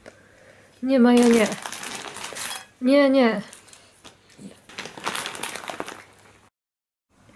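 A crisp snack bag crinkles and rustles close by.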